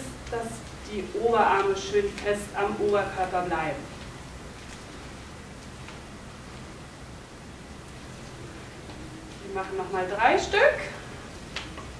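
A young woman speaks calmly and clearly, giving instructions.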